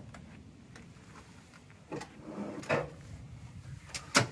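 A man climbs into a car, its body thumping and creaking.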